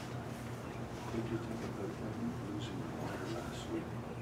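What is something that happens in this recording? A man speaks quietly through a microphone in a large room.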